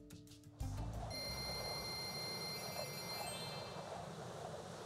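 Bright chimes ring rapidly.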